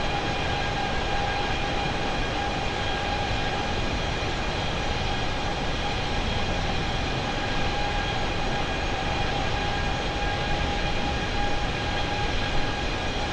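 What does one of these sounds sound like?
Jet engines roar steadily with a constant whine.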